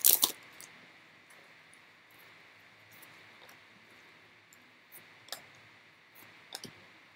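Trading cards rustle and flick as hands shuffle through them.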